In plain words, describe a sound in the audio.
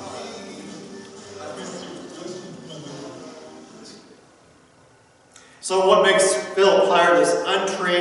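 An older man speaks calmly and then with animation through a microphone in an echoing hall.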